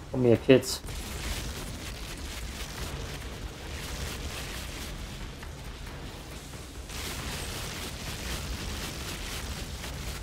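Magic energy blasts whoosh and crackle during a fight.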